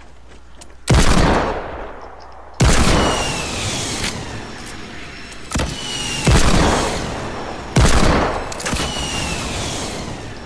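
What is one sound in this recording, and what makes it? Rockets explode with loud booming blasts.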